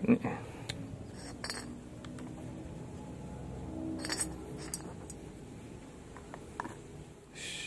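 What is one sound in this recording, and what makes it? Plastic and metal parts clatter as they are taken apart and set down.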